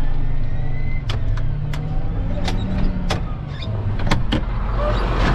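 A cab door latch clicks open.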